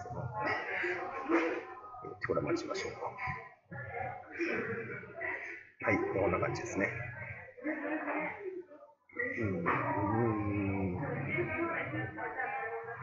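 A man talks calmly and steadily into a nearby microphone.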